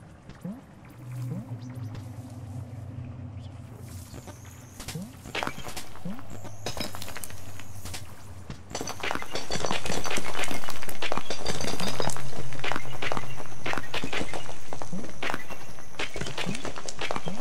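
Game music plays with soft tones and chimes.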